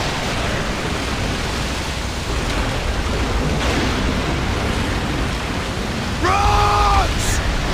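Waves splash against a small boat.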